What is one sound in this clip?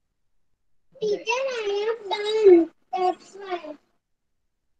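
A young girl speaks calmly through an online call.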